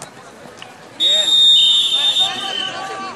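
A referee blows a whistle in sharp blasts.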